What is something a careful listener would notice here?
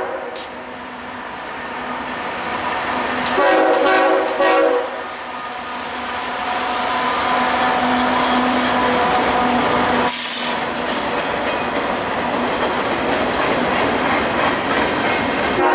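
A freight train rumbles and clatters past, growing louder as it nears.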